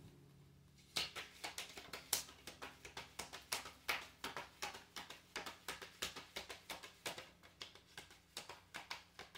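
Playing cards riffle and flap quickly as they are shuffled.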